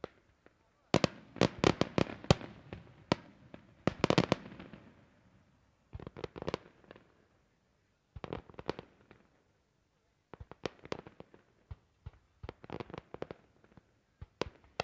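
Fireworks bang and crackle rapidly overhead, with a rolling echo.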